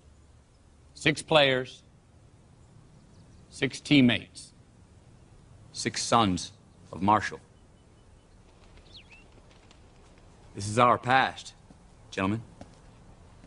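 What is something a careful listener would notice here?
A man speaks loudly and forcefully in short bursts outdoors.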